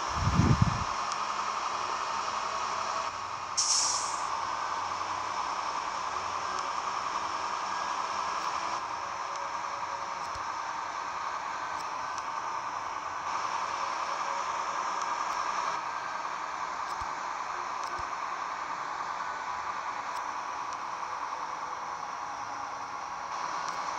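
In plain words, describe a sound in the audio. A truck engine hums steadily while driving at speed.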